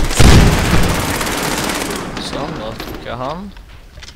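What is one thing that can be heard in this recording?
A rifle reload clicks and clatters.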